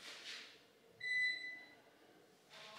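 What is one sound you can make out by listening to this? A washing machine gives a short electronic beep.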